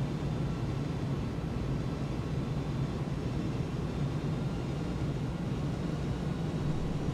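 Aircraft engines drone with a steady low rumble.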